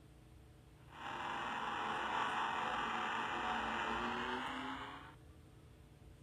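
A laser beam fires with a loud, steady rushing roar, then cuts off.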